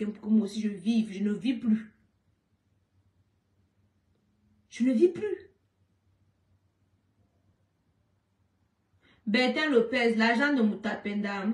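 A young woman speaks with animation, close by, in short bursts with pauses.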